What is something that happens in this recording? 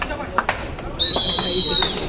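A referee blows a sharp, steady whistle.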